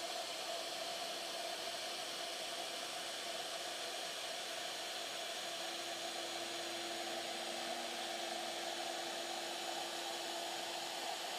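A small electric motor hums steadily.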